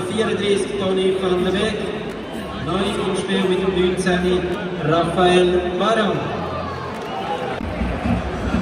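A large stadium crowd chants and sings in unison.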